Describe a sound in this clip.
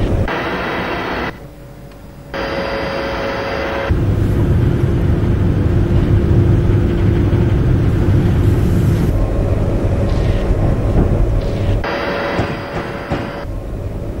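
An electric train rumbles along the tracks with a steady hum.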